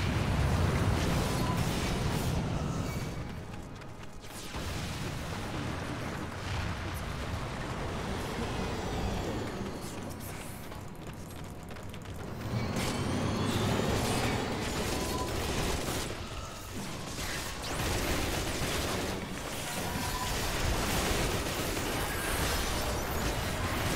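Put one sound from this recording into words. Magic impacts burst and boom during a fight.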